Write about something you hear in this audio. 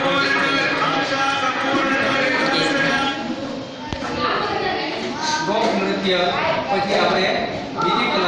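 Music plays through a loudspeaker.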